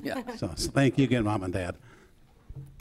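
An elderly man speaks into a microphone in a large room.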